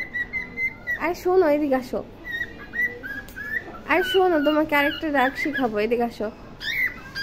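A cockatiel whistles a warbling tune close by.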